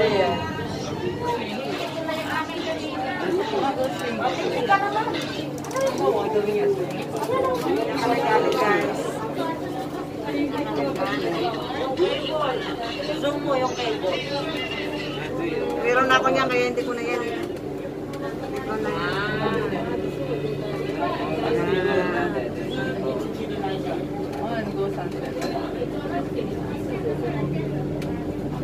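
A vehicle's motor hums steadily as it rides along.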